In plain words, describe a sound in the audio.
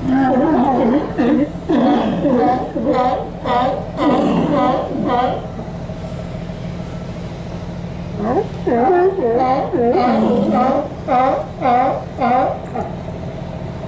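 Sea lions bark and roar loudly, close by.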